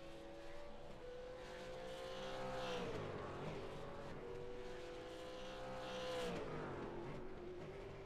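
A racing car engine revs up sharply and drops back.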